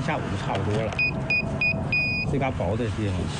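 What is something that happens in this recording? An electronic meter beeps several times in short, quick pulses.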